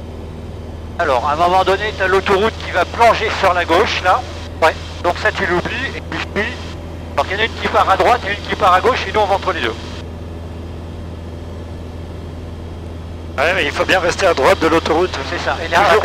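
A man speaks calmly through a headset intercom.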